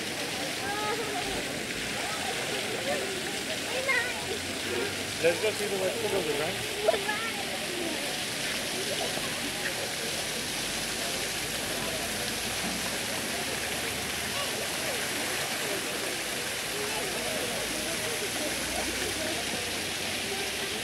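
A crowd of people chatter outdoors nearby.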